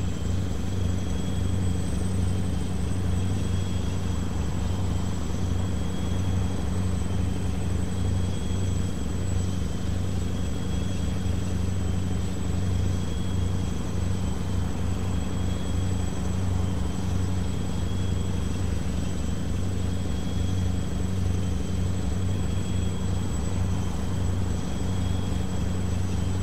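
Tyres roll over the road with a steady rumble.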